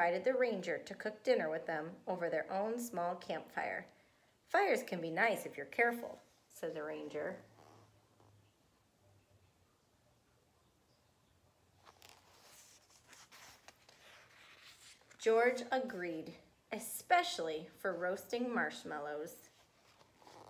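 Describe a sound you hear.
A young woman reads aloud calmly and close by.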